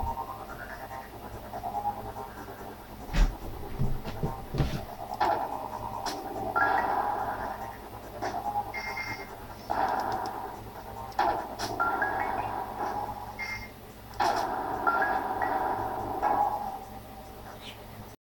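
Video game music plays with bright electronic tones.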